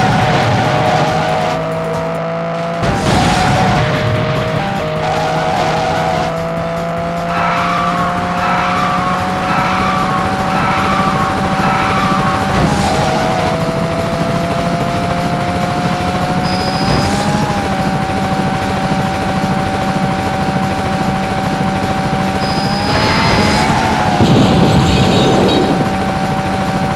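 A racing car's engine hums steadily, its pitch slowly rising.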